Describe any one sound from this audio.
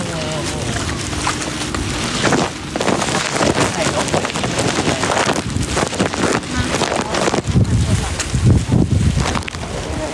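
Hail pelts hard pavement in a dense, rattling patter.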